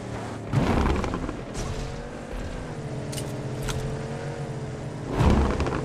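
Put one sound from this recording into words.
A car engine revs and hums as a car drives along.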